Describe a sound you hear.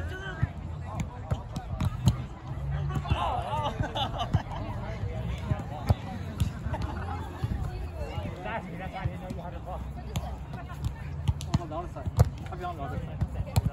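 Young people chatter and call out nearby, outdoors.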